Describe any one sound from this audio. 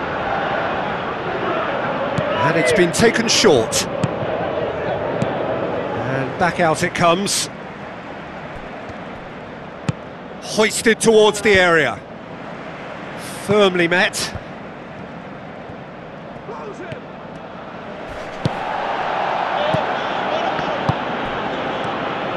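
A stadium crowd roars and chants steadily, swelling louder at times.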